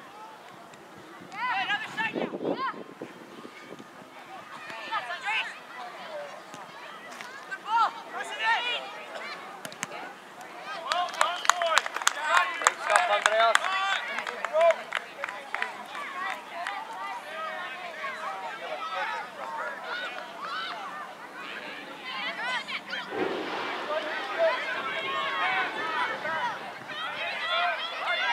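Children call out to one another across an open field.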